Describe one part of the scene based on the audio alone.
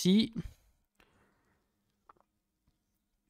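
A young man sips a drink from a glass.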